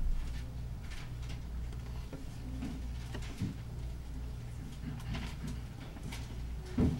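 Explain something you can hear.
A man reads aloud calmly close to a microphone.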